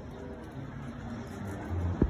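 A dog pants with its mouth open.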